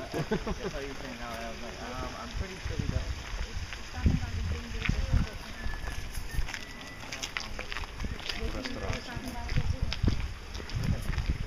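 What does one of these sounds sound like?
Young people talk casually as they walk outdoors.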